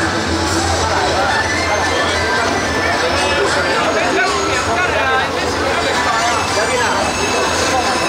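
A large crowd chatters and calls out nearby, outdoors.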